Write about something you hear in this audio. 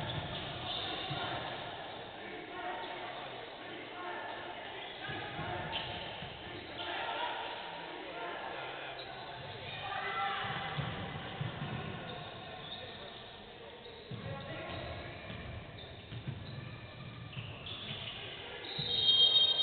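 Players call out to each other across the echoing hall.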